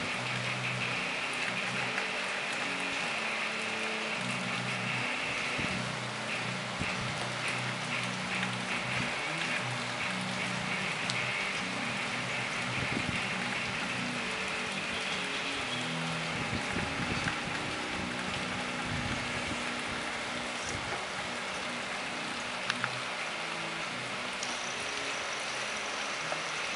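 A train approaches slowly with a low rumbling engine.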